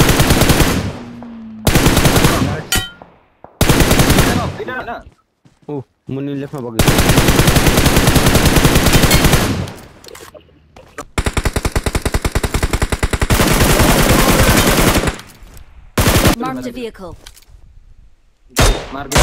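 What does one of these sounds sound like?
Rapid rifle fire rattles in loud bursts.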